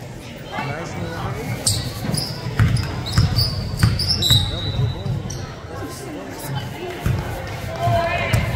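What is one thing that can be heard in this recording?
Young women shout to each other across the court.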